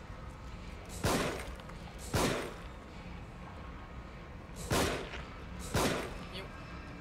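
A revolver fires several sharp shots.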